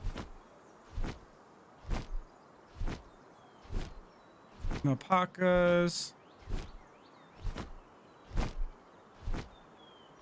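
Large wings flap with steady, regular heavy beats.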